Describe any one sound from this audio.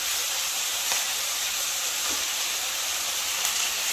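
Chopped vegetables drop into a sizzling pan.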